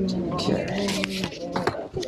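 Paper bills rustle as they are counted.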